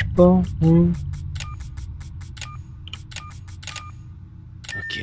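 Electronic keypad buttons beep as a code is entered.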